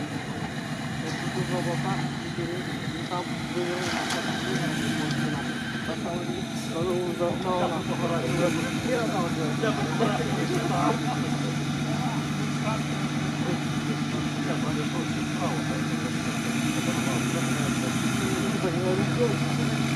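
An off-road vehicle's engine rumbles and strains steadily.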